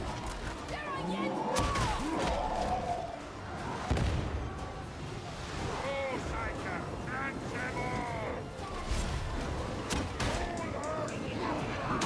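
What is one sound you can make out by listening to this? A heavy gun fires rapid shots.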